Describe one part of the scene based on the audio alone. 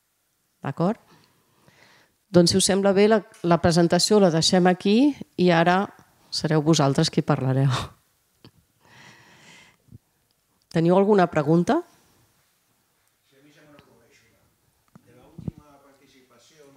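A woman speaks with animation through a microphone in a room with a slight echo.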